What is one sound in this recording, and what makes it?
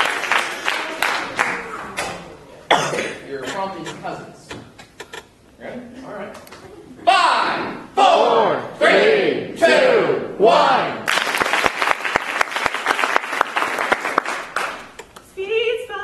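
A man speaks loudly and with animation in an echoing hall.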